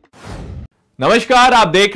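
A young man speaks steadily into a close microphone.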